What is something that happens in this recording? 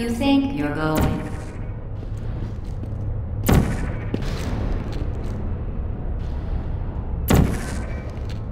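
A futuristic gun fires with sharp, crackling zaps.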